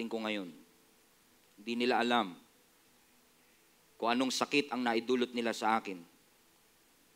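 A man speaks slowly and calmly into a microphone, with pauses.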